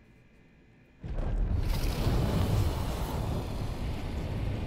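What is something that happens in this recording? A shield slides and scrapes rapidly over sand.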